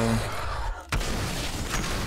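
A sword strikes with a sharp metallic clash.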